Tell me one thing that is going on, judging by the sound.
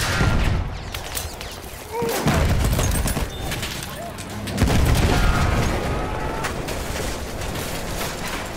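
Gunfire crackles and pops all around.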